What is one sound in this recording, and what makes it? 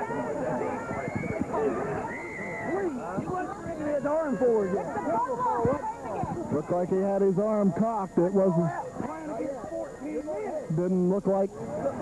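A crowd of young men chatter and shout all around, outdoors.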